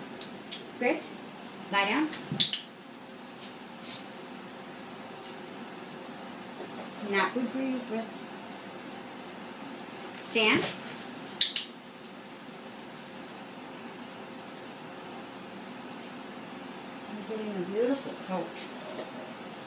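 A woman speaks briefly and calmly to a dog nearby.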